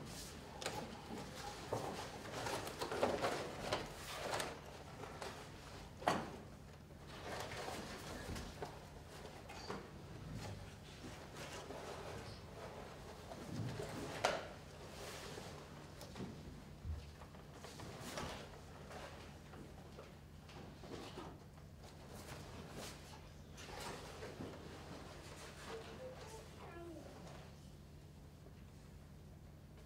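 Paper figures rustle and crinkle as they are handled and moved about.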